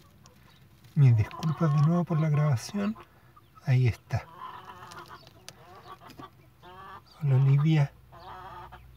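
A hen growls and clucks close by in low, drawn-out bursts.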